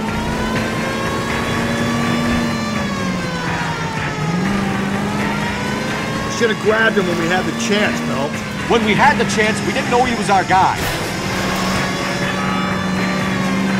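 A car engine hums steadily, dipping and rising in pitch as the car slows and speeds up.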